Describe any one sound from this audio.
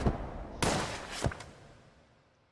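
A page flips over with a papery swish.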